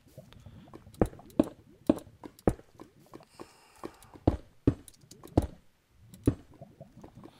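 Heavy stone blocks thud one after another as they are set down.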